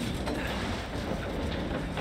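Footsteps pound quickly as a person runs.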